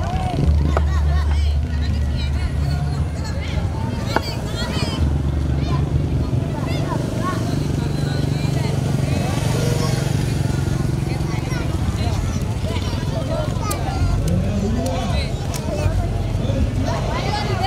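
Children chatter and call out nearby outdoors.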